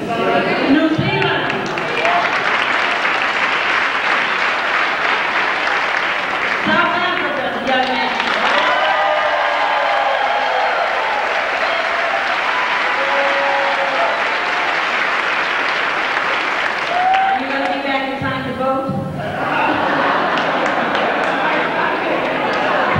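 A middle-aged woman speaks with animation through a microphone in a large, echoing hall.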